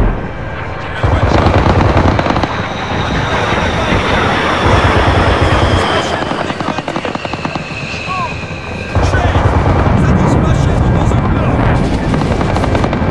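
A jet plane roars overhead.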